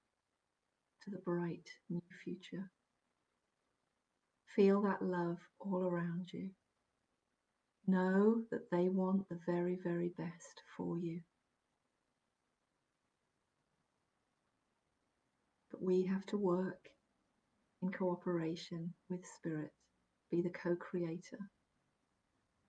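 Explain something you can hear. A middle-aged woman speaks calmly and close to a microphone, with pauses.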